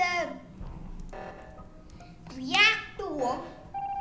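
An alarm blares.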